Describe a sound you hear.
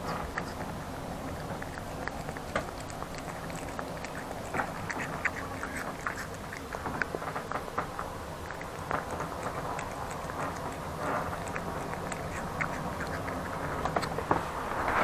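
A cat chews and laps food from a bowl up close.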